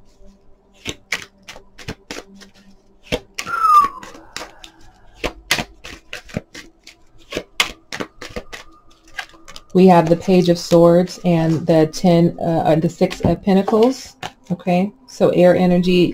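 Cards riffle and slap together as a deck is shuffled.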